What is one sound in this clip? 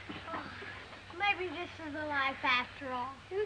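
Young boys talk excitedly.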